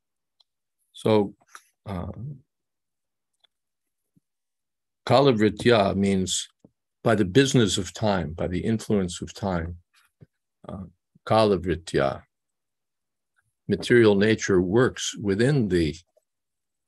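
An elderly man speaks calmly over an online call, with long pauses.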